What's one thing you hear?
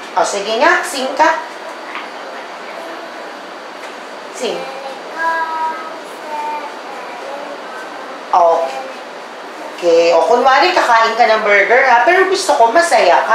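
A young girl speaks close by, reciting with animation.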